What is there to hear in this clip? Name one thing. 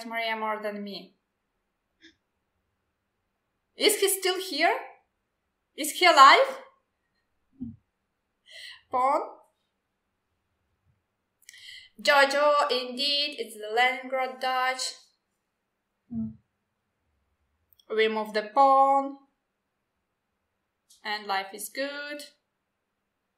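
A woman talks calmly over an online call.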